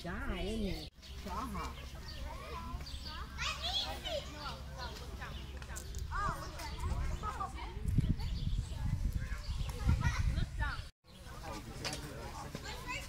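Children and women chatter and call out nearby outdoors.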